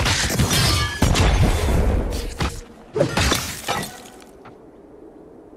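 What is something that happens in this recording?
Heavy blows and explosions crash in quick succession.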